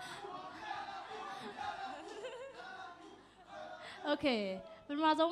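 A crowd of young people chatters and murmurs in a room.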